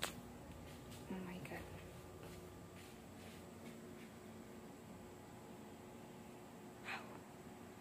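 A young woman speaks quietly and calmly close by.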